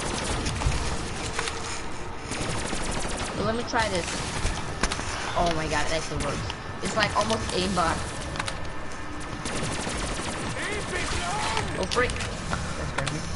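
Electric crackling bursts zap sharply.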